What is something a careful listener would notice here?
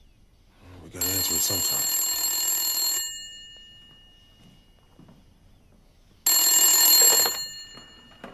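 A corded desk telephone's bell rings.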